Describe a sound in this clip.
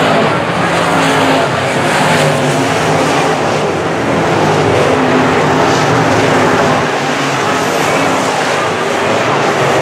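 Loud race car engines roar steadily.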